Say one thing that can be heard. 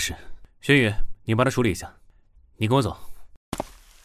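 Another young man speaks calmly nearby.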